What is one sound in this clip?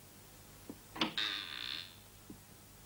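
A door handle rattles and turns.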